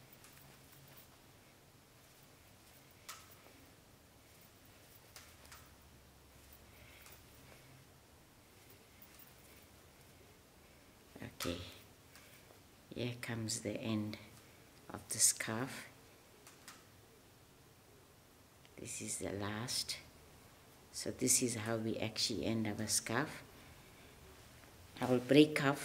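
A crochet hook softly clicks and rustles through yarn.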